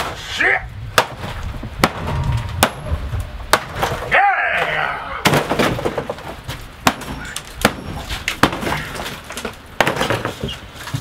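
A hammer bangs sharply against wooden panelling.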